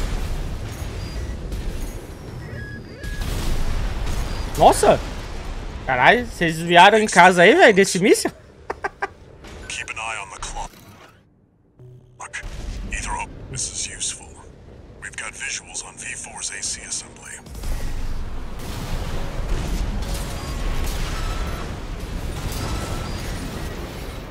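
Game weapons fire and explode with rumbling blasts.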